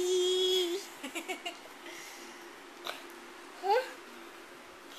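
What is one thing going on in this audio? A toddler babbles and squeals briefly close by.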